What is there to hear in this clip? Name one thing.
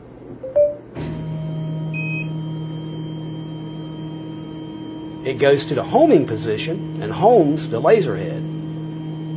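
A laser cutter hums steadily as its head moves back and forth.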